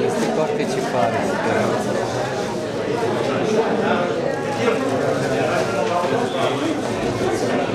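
An elderly man laughs close by.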